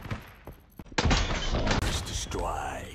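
A shotgun fires a blast.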